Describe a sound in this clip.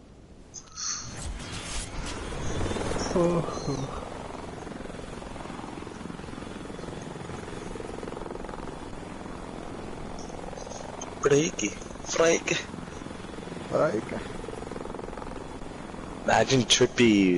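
A helicopter's rotor whirs steadily overhead.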